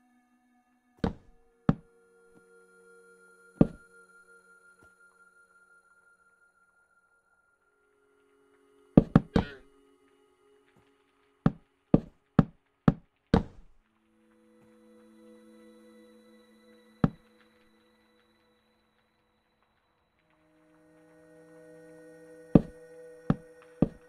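Wooden blocks are placed with short, hollow knocks.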